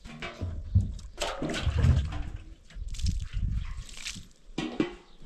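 Water pours from a plastic jug into a metal basin.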